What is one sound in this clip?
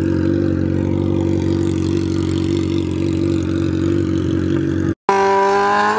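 A motorcycle engine idles and revs loudly close by.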